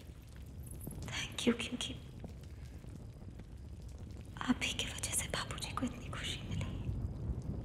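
A young woman speaks softly and calmly close by.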